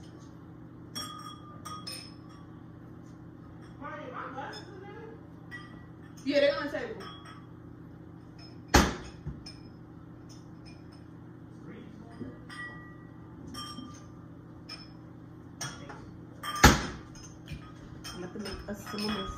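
Glasses clink together.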